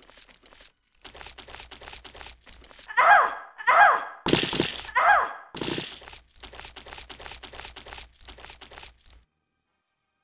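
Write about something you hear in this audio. Footsteps crunch steadily over dry straw.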